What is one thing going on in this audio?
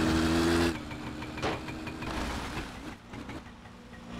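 A motorbike crashes to the ground with a thud.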